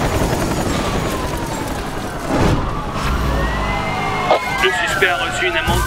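A car crashes loudly into a roadblock.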